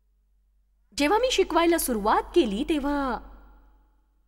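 A middle-aged woman speaks with animation through a microphone in a large echoing hall.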